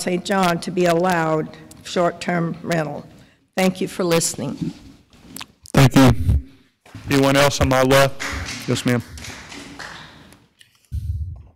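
An elderly woman speaks into a microphone with feeling.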